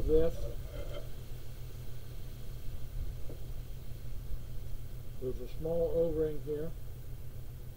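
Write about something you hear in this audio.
An elderly man speaks calmly and briefly nearby.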